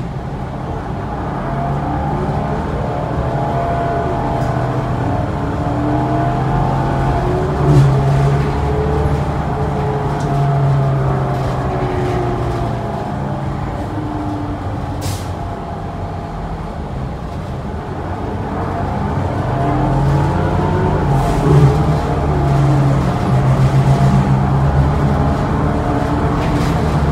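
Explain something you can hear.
The bus body rattles and clatters over bumps.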